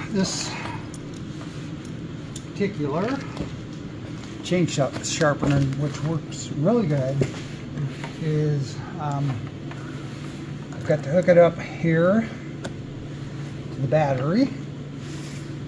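An elderly man talks calmly and close by.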